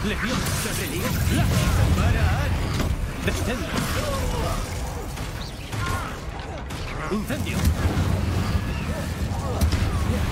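Magic spells crackle and whoosh in quick bursts.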